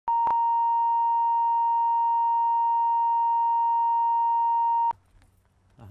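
A steady high test tone beeps.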